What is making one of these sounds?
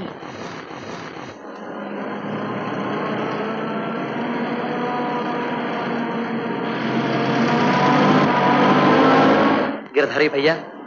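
A heavy truck approaches on a road.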